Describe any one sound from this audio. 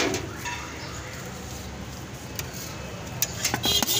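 A ladle scrapes and clinks against a metal pot.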